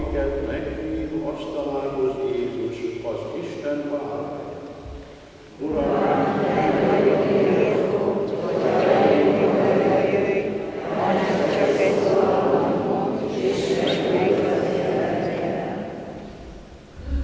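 An elderly man chants into a microphone in a large echoing hall.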